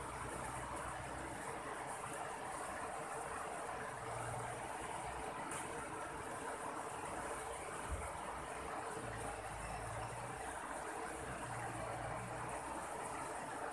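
A river rushes steadily over rocks.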